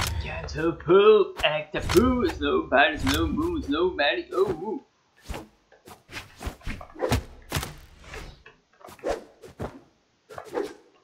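Sharp game fighting hits and sword slashes crack in quick bursts.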